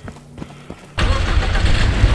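A truck engine starts up and roars loudly.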